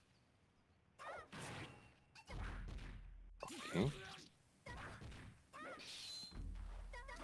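Swords slash and strike with sharp hits in quick bursts.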